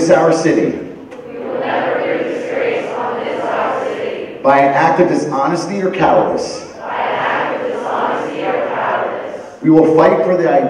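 A standing crowd of teenagers repeats the words in unison in a large echoing hall.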